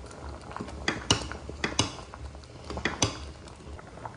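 A metal ladle clinks against a steel pot.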